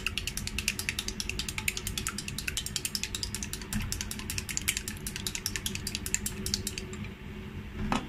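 Chopsticks rapidly whisk eggs, clicking against a metal bowl.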